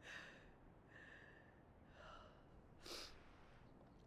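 A young girl sobs softly nearby.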